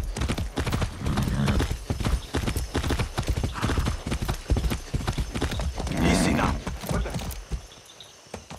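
Horse hooves pound rapidly on a dirt road.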